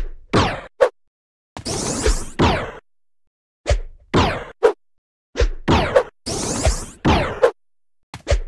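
Short whooshing game sound effects play again and again.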